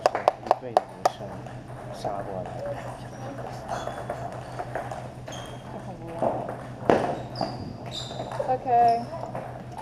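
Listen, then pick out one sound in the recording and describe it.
A table tennis ball clicks back and forth between paddles and the table.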